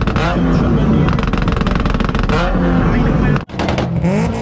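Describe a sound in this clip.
A car engine revs hard, its exhaust popping and crackling loudly.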